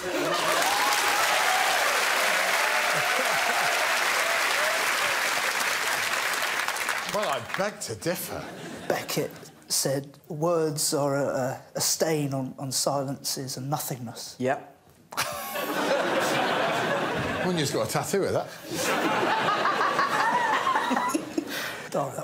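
A group of people laughs loudly.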